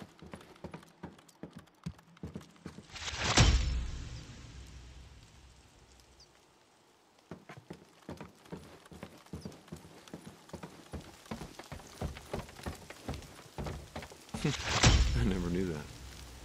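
Footsteps thud on a creaky wooden floor.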